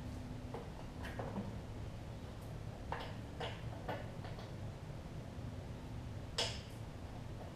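Small clicks and knocks come from a lawn mower being handled.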